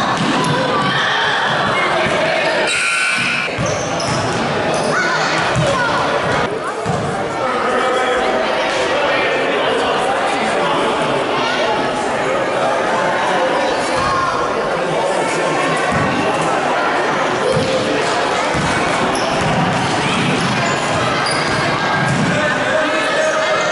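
A crowd of spectators chatters and calls out in a large echoing gym.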